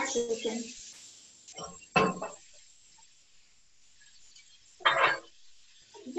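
A wooden spatula scrapes in a frying pan.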